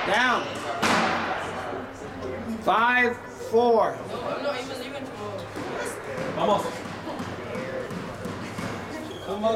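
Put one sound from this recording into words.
A squash ball smacks sharply off a racket and the walls in an echoing court.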